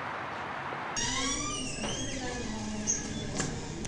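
A metal door handle clacks.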